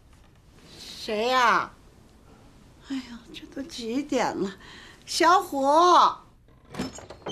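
An elderly woman speaks in a weak, drowsy voice.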